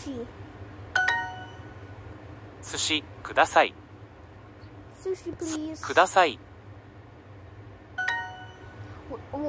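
A short bright chime rings.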